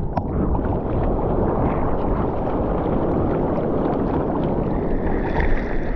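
An arm paddles and splashes through water.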